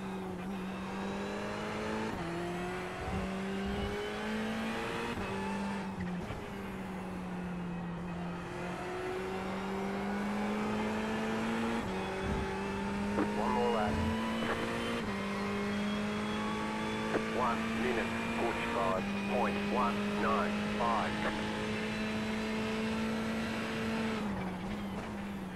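A racing car engine drones steadily, its pitch rising and falling as gears change.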